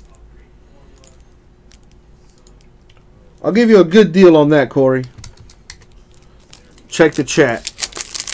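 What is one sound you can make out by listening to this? A foil card wrapper crinkles and rustles as it is handled.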